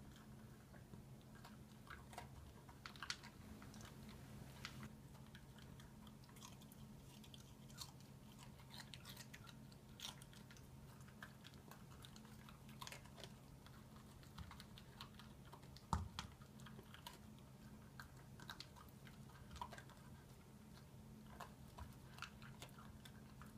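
A small dog crunches food and clicks against a plastic bowl.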